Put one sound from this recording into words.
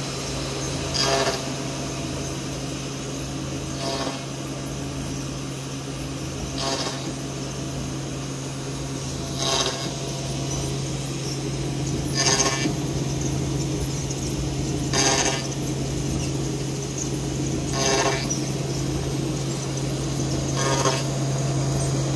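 Stepper motors whir in short, regular bursts.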